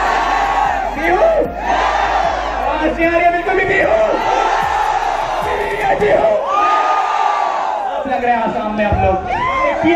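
A young man shouts into a microphone over loudspeakers.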